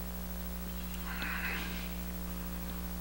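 A man speaks briefly and quietly nearby.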